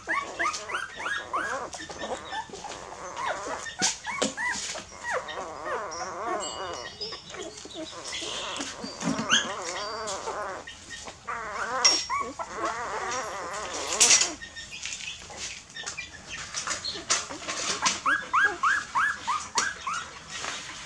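Puppies squeak and whine while suckling.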